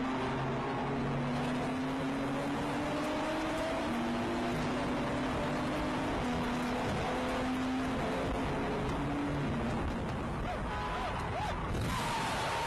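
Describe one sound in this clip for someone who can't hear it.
Tyres rush over the road with a steady roar, echoing inside a tunnel.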